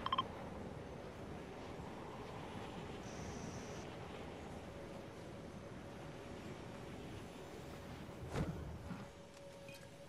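Wind rushes steadily past a glider.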